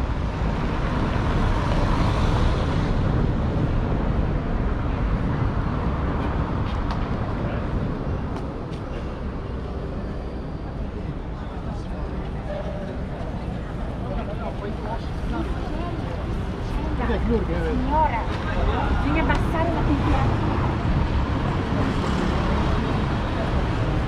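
A low city traffic rumble carries on steadily outdoors.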